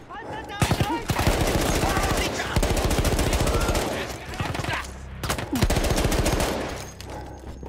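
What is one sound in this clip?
Automatic gunfire rattles loudly in bursts.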